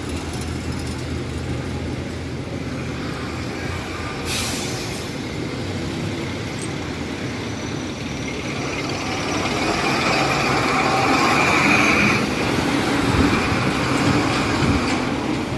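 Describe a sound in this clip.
A diesel jeepney drives past.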